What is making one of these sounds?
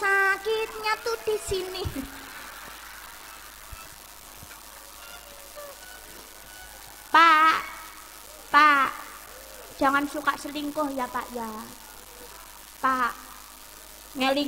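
A young woman sings through a microphone and loudspeakers, with pauses between phrases.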